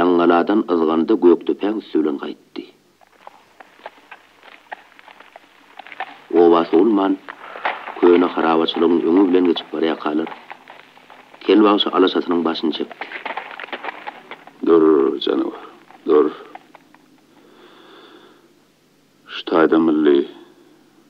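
An elderly man sings in a strained, wavering voice.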